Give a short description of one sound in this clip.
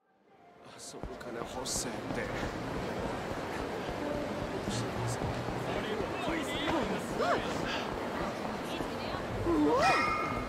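A man's footsteps run quickly on pavement.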